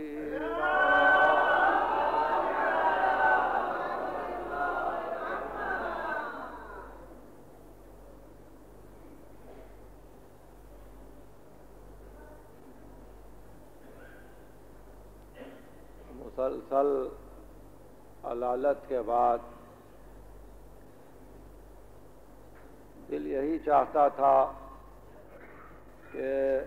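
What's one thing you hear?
An elderly man speaks with animation, heard through an old, hissy recording.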